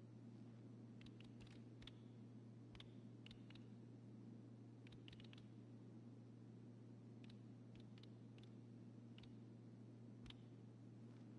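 Fingers type on a computer keyboard.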